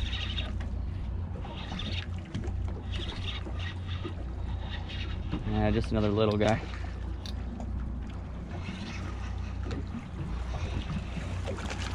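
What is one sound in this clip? A boat engine rumbles low and steadily.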